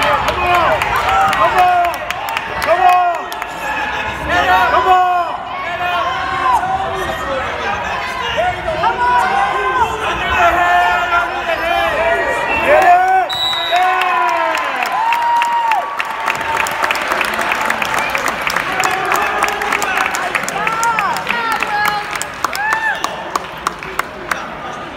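Spectators shout and cheer loudly in a large echoing gym.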